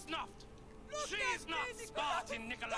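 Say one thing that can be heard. A young woman pleads urgently.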